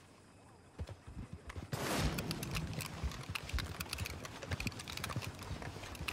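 A horse-drawn wagon rattles past nearby.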